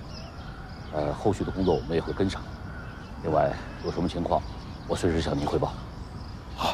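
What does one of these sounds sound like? A middle-aged man speaks firmly and calmly up close.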